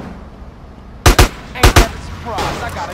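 Gunshots fire in quick bursts, loud and sharp.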